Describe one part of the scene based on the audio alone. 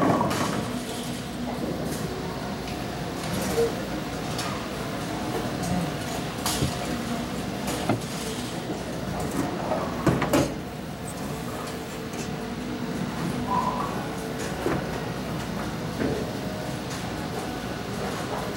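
Bowling balls rumble down wooden lanes in a large echoing hall.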